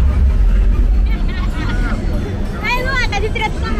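Young women chat and laugh close by.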